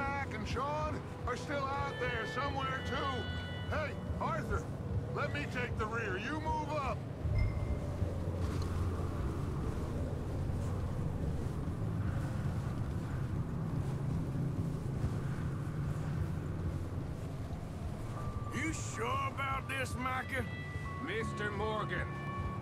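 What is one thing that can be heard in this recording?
Horses' hooves thud steadily on snow.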